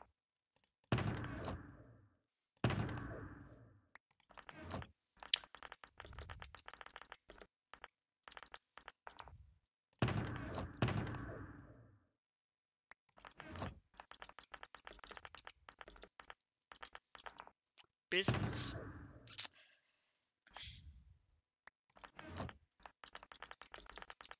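Game item clicks sound quickly and repeatedly.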